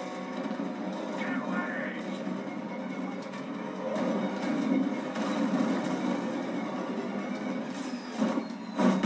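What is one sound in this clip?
A powerful car engine roars from a television speaker.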